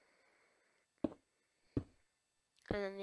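Blocks land with short dull thuds.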